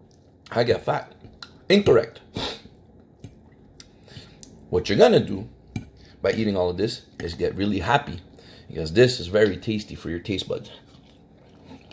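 A fork scrapes and clinks against a plate.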